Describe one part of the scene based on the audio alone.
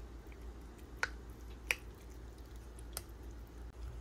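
A spoon clinks against a ceramic bowl.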